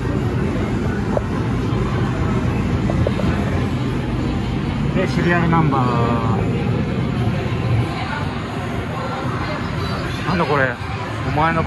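A noisy din of arcade machines fills the room.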